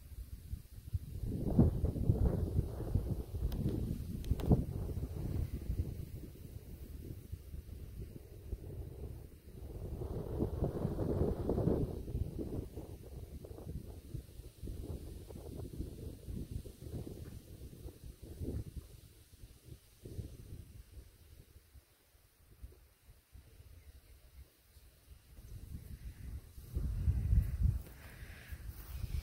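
Wind gusts outdoors in loud, rumbling bursts.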